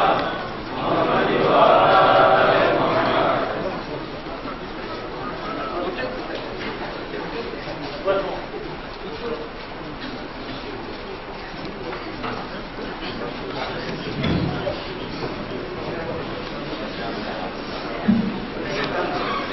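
A crowd of boys and men chatters.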